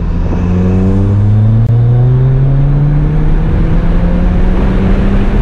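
A car engine hums steadily from inside the cabin, its pitch slowly rising as it speeds up.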